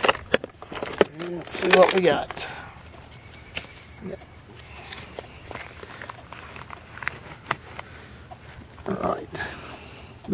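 Knives and tools clatter softly in a hard plastic case.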